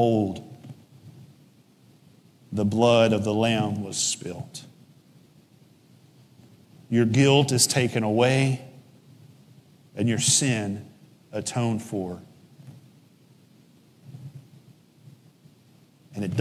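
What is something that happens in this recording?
A man speaks calmly through a microphone, with pauses, in an echoing hall.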